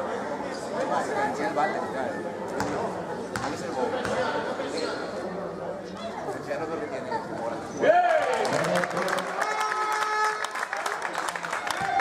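A basketball bounces on a hard court in an echoing hall.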